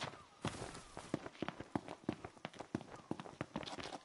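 Footsteps thud on a paved road.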